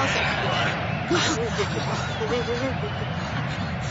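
A man gasps in shock.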